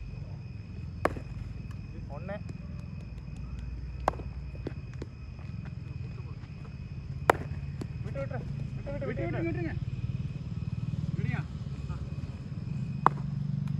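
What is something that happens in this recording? A cricket bat strikes a ball with sharp cracks.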